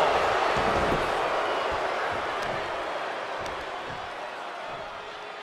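A large crowd cheers and roars in a big arena, slowly fading.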